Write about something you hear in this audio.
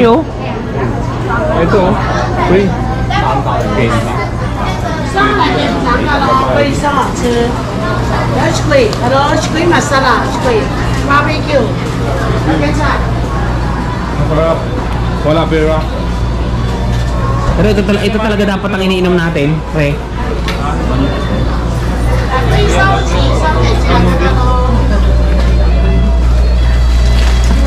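A crowd murmurs in a busy street.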